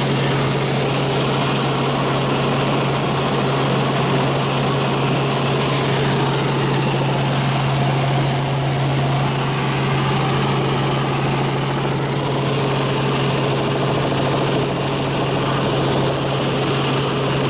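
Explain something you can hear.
A helicopter's engine and rotor drone loudly and steadily from inside the cabin.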